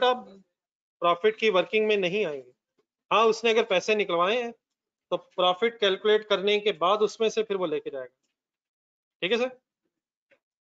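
A man speaks calmly and clearly through a microphone.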